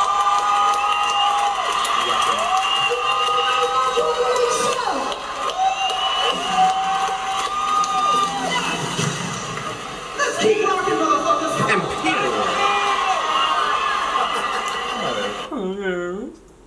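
Live rock music with a singer plays through speakers, loud and full.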